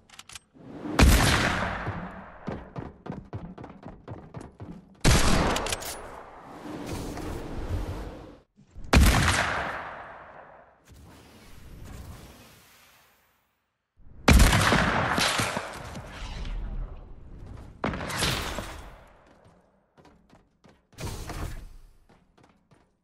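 Game sound effects whoosh and thud in sudden bursts.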